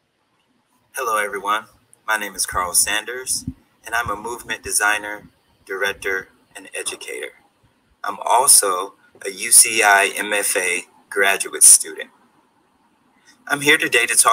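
A man speaks with animation, close to the microphone.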